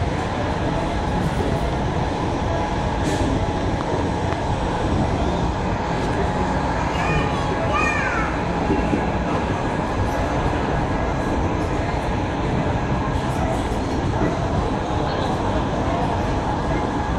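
A passenger train rumbles as it pulls out of a station, heard from aboard.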